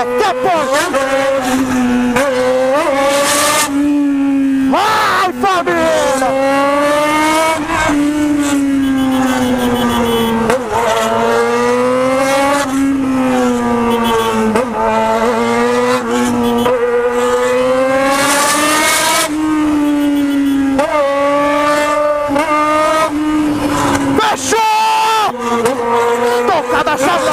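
A motorcycle engine revs up and down, close by.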